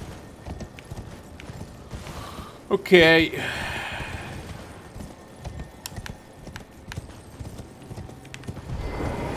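Horse hooves clop steadily on stone.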